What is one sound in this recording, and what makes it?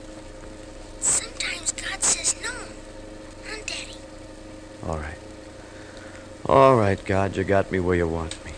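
A man reads out lines into an old radio microphone.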